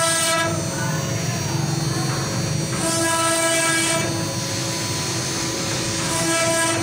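A router bit grinds and chatters as it carves into wood.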